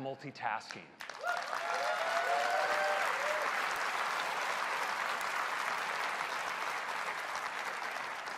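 A large audience claps and applauds loudly.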